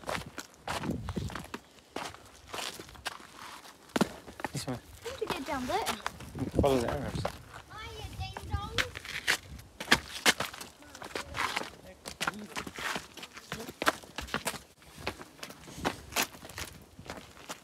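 Footsteps crunch and scuff on rock and gravel.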